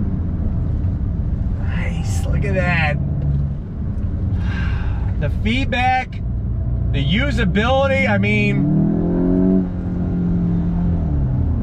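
A car engine hums steadily and rises in pitch as the car speeds up.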